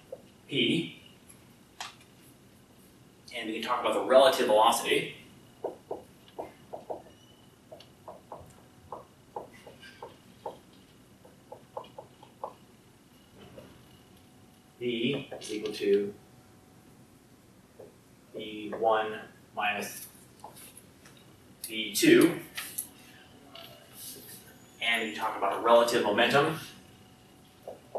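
A man speaks in bursts in a lecturing tone, with a slight room echo.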